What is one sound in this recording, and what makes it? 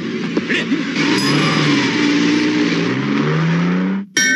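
A van engine revs and runs.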